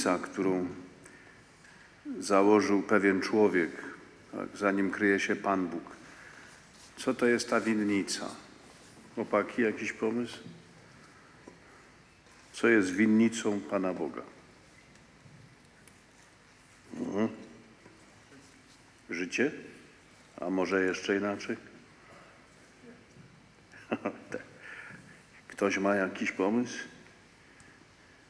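An elderly man speaks slowly and solemnly into a microphone in a large echoing hall, with long pauses.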